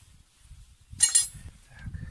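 Metal parts clink against a wheel hub.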